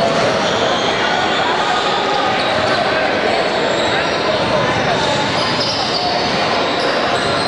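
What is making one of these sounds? A man talks calmly to a group of boys close by.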